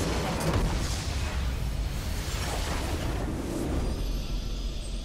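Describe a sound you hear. A building collapses with a heavy rumbling blast.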